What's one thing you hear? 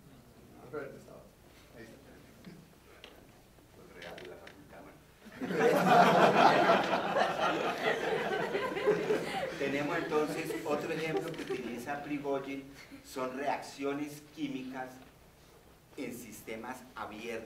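An elderly man lectures calmly into a microphone in a large hall.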